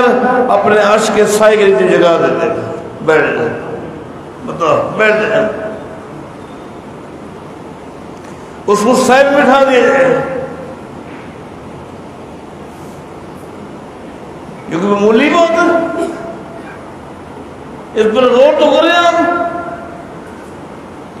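A middle-aged man speaks slowly and calmly through a microphone, with long pauses.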